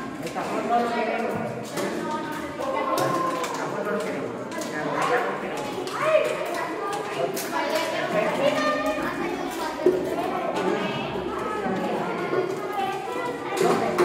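Children chatter and talk over each other in an echoing room.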